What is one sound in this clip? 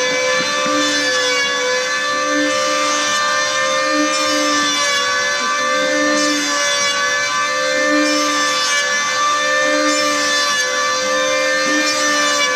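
Wood shavings rasp as a power planer cuts across a board.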